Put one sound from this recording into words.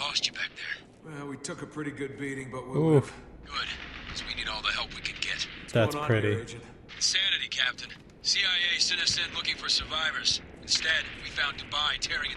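A young man talks calmly close to a microphone.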